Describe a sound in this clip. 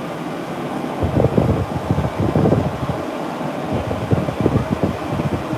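Air from a dryer gusts against the microphone in loud buffeting bursts.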